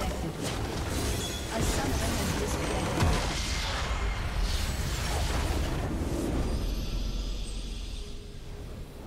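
A huge magical explosion roars and rumbles.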